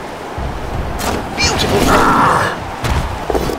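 A heavy metal-clad blow crashes and clatters.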